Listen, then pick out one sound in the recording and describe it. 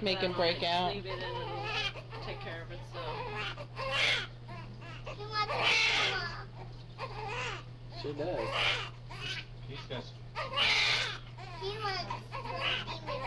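A newborn baby cries close by in short, wailing bursts.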